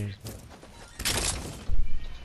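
Gunfire bursts out in a video game.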